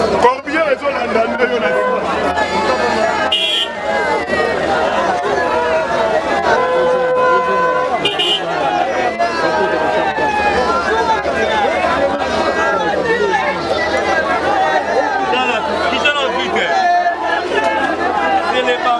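A large crowd of men and women talks and shouts all around, close by, outdoors.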